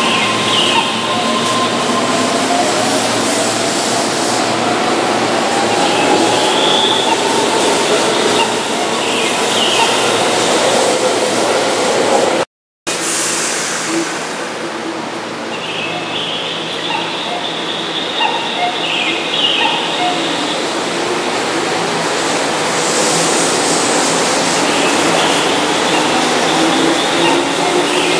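A train rolls past close by with a loud, steady rumble.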